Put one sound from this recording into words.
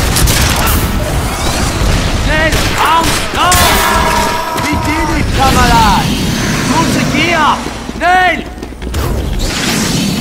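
Weapons fire and bang during a close fight.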